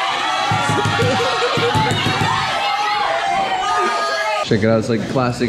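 A group of teenagers sings and shouts loudly together, close by.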